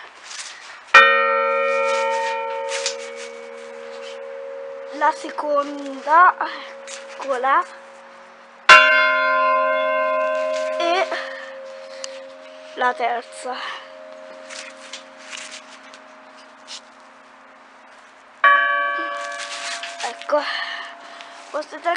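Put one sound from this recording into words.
A large bell strikes loudly and rings on, slowly fading.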